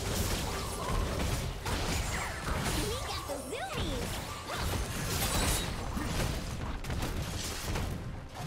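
Game weapons strike with quick impacts.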